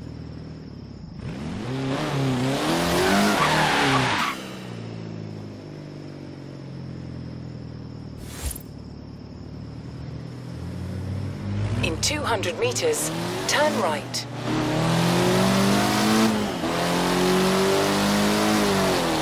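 A car engine revs hard and roars, rising and falling in pitch.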